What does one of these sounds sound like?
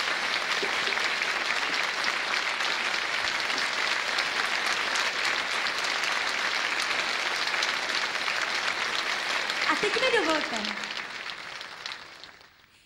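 A large audience applauds loudly, then the clapping fades away.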